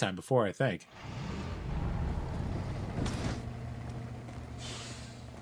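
A heavy vehicle engine hums and rumbles.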